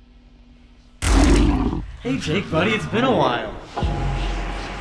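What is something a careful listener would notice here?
A young man laughs and shouts excitedly close by.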